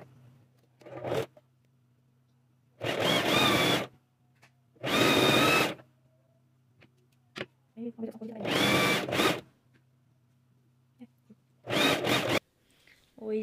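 A sewing machine stitches in short, fast bursts.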